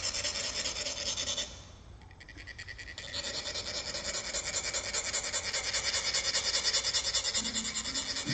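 Metal funnels rasp rapidly and steadily, making a fast, high scratching sound.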